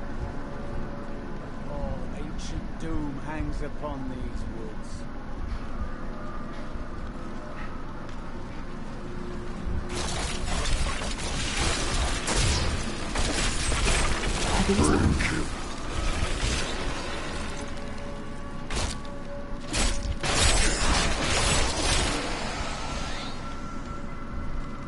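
Eerie music plays steadily throughout.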